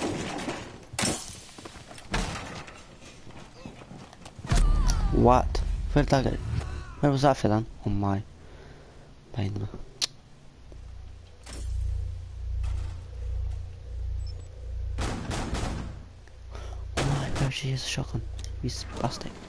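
Gunshots crack sharply in quick bursts.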